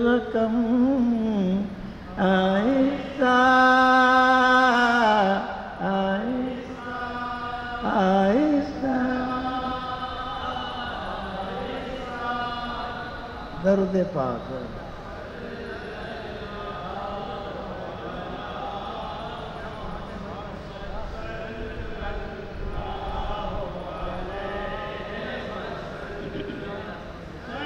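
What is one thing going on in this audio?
An elderly man sings with long held notes into a microphone.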